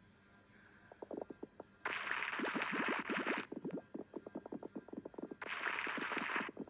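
Many small balls clatter and rattle as they tumble.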